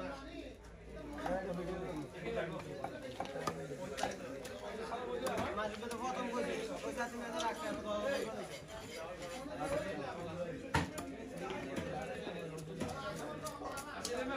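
A knife scrapes and slices through a slippery fish.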